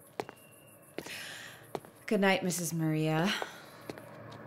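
A young woman speaks brightly nearby, her voice rising and falling.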